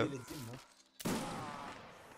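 A musket fires with a sharp crack.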